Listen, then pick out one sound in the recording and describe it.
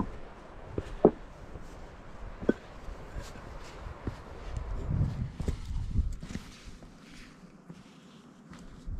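Trekking poles click against stone.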